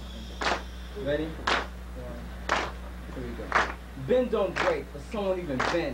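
A young man raps rhythmically, close by.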